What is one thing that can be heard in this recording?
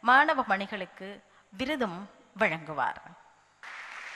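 A middle-aged woman speaks into a microphone, her voice carried over loudspeakers.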